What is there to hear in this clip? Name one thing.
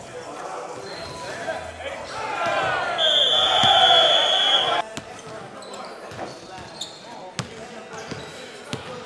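Basketballs bounce on a hard floor in an echoing gym.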